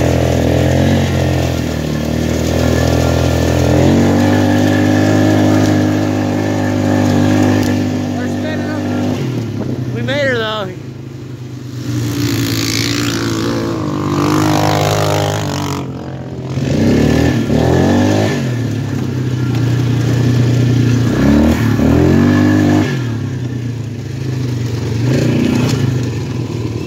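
Grass and leaves brush and crunch under the tyres.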